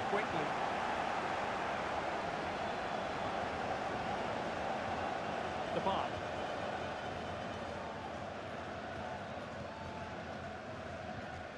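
A large crowd roars steadily in a stadium, slowly growing a little quieter.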